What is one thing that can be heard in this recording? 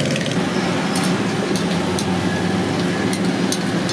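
Metal tongs clink against a metal pot.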